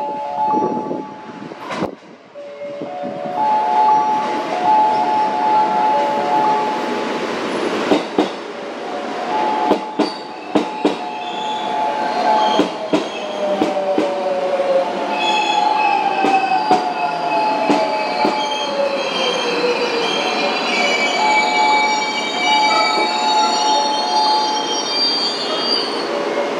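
A train rumbles into the station and slows down.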